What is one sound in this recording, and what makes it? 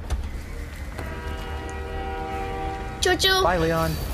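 A train horn blares.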